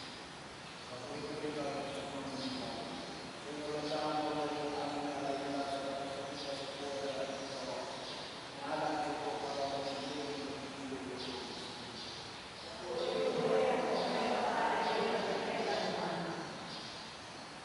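A man chants slowly in a steady voice, echoing in a large hall.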